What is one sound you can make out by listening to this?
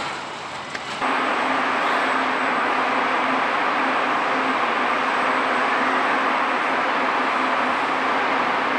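Robot arms whir and hum steadily.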